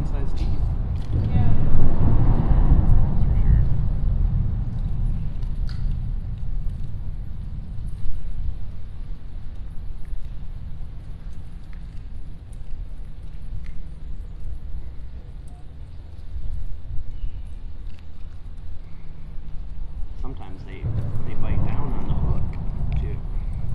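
Wind blows in gusts across the microphone outdoors.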